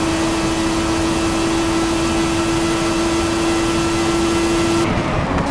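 A racing car engine whines at a steady high pitch.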